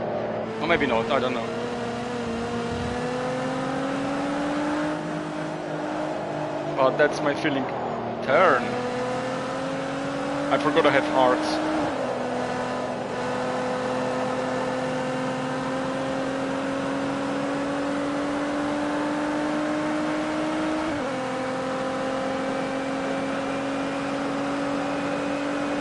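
A car engine drones steadily, its pitch rising and falling with the gear changes.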